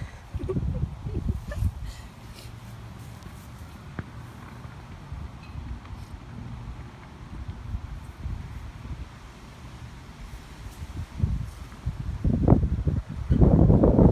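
A hen clucks softly nearby.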